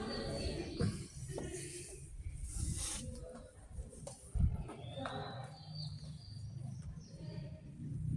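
Footsteps walk and climb over stone paving outdoors.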